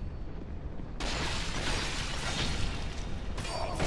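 A fire roars and crackles close by.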